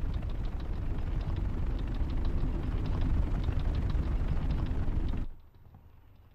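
A huge machine rumbles and clanks close overhead.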